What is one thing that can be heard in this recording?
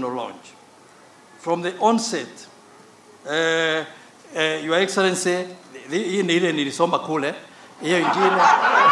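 A man speaks slowly into a microphone over loudspeakers.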